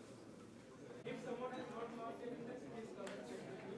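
A man speaks through a loudspeaker.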